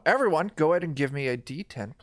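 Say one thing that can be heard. A young woman exclaims loudly over an online call.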